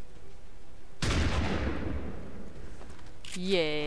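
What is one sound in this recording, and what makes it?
A rifle fires a loud burst that echoes away.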